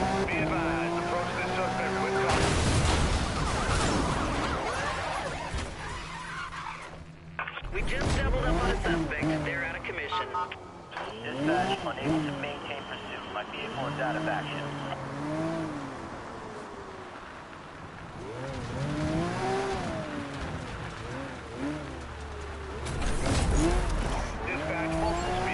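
A sports car engine roars at speed.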